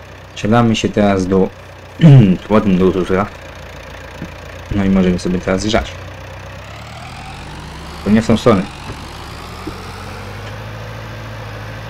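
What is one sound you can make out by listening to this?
A tractor engine hums steadily and slowly revs up.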